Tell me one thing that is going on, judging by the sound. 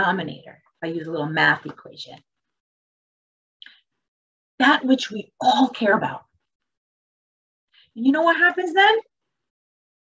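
A woman speaks calmly in short bursts, heard through an online call.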